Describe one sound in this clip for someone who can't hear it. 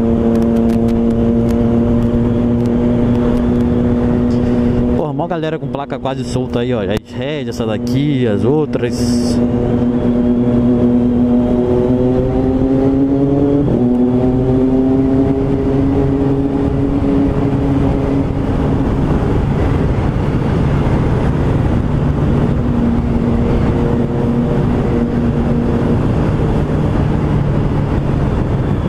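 A motorcycle engine hums steadily up close, rising and falling in pitch as it speeds up and shifts gears.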